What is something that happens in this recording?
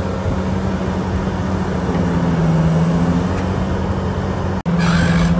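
A heavy diesel engine rumbles steadily close by.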